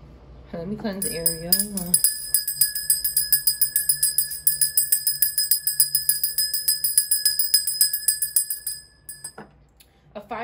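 A small hand bell rings with quick, steady shakes.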